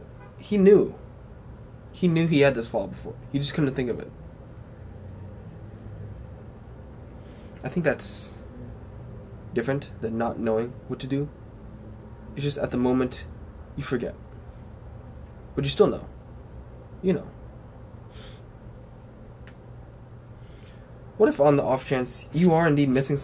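A young man talks calmly and close by, in pauses.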